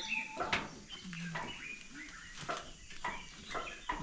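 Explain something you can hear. A metal gate creaks and rattles as it is pushed open.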